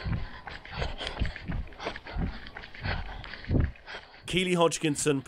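Running footsteps slap steadily on a paved road.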